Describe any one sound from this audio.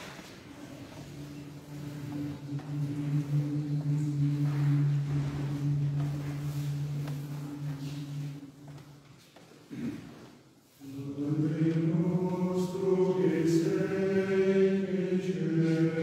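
A male choir sings in harmony, echoing in a large reverberant hall.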